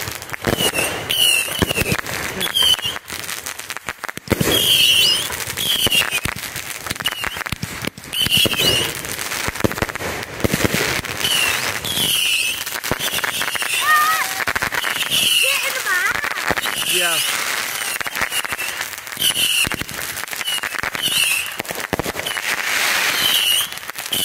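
Fireworks crackle and pop loudly.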